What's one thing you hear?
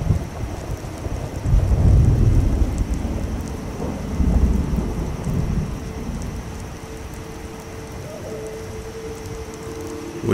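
A low wind rumbles outdoors.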